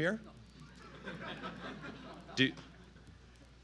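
An audience murmurs and chuckles quietly.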